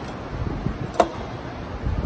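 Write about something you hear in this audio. A hand knocks against a metal turbocharger housing.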